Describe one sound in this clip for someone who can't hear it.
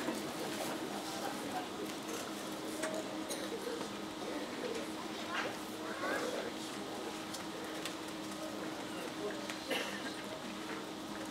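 A band plays wind instruments in a large echoing hall.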